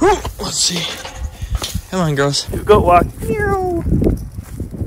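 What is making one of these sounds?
A young goat bleats loudly close by.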